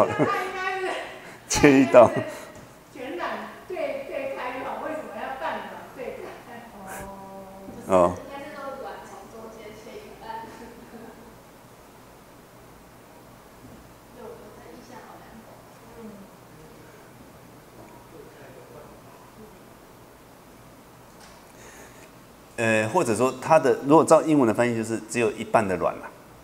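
A middle-aged man speaks calmly into a microphone, heard through a loudspeaker in a room.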